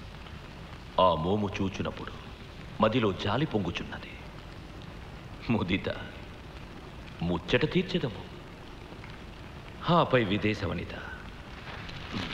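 A man speaks slowly in short bursts, close by.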